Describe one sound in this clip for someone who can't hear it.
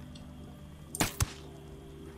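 A silenced rifle fires a single sharp shot.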